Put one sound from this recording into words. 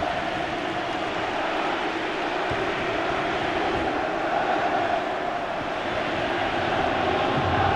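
A large stadium crowd roars and cheers steadily throughout.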